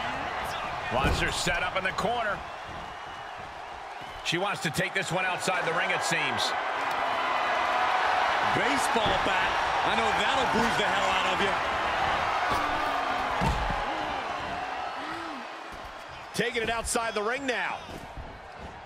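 A body thuds onto a wrestling ring floor.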